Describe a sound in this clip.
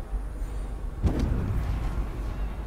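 A sudden magical whoosh rushes past.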